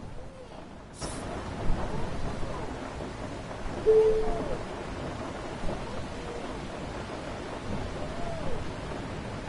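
Rain patters steadily on a bus windscreen.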